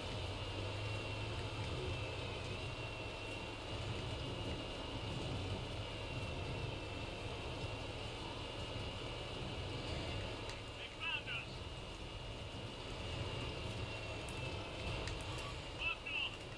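A heavy tank engine rumbles steadily.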